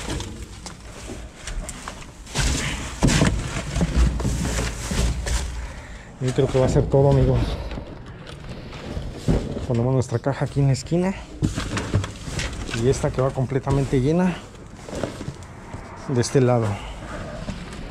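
Cardboard boxes scrape and thump as they are moved.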